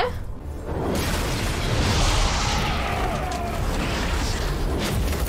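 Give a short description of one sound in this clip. An explosion roars from a loudspeaker.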